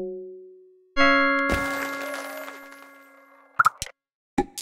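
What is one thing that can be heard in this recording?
A bright chime rings out and slowly fades.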